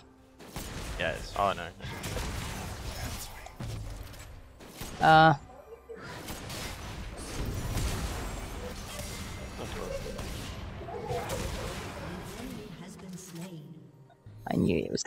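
Game spell effects whoosh and crackle in battle.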